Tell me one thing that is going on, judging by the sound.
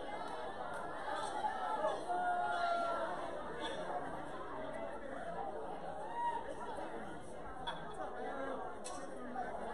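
A crowd of men and women chatters throughout a large echoing hall.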